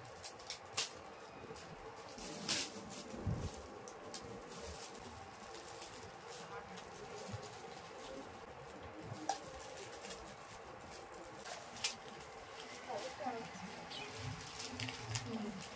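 Wrapping paper crinkles and rustles as a gift is unwrapped.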